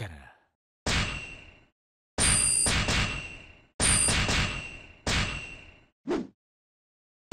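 Bright chiming effects ring out one after another with short gaps between them.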